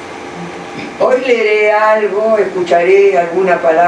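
An elderly man sings out loudly nearby.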